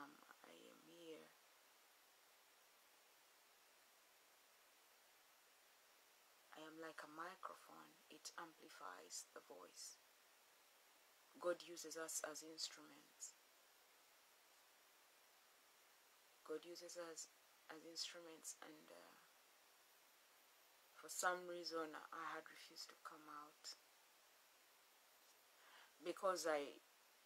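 A woman speaks calmly and slowly, close by, with long pauses between phrases.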